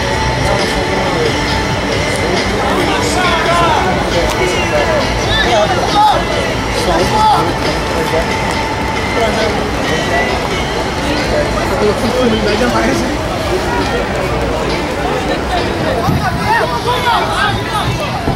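A crowd chatters and cheers outdoors.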